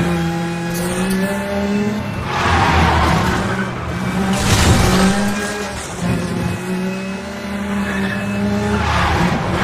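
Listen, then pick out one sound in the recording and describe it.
A race car engine roars at high revs, rising and falling as the gears shift.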